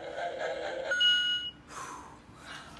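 An electronic device beeps sharply.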